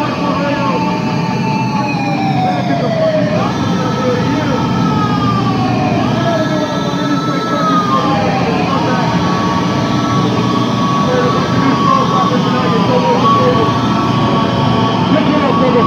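An electric guitar plays loud, distorted notes that bend and slide.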